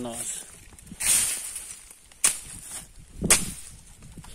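Dry grass and leaves rustle close by.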